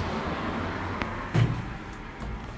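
An elevator button clicks.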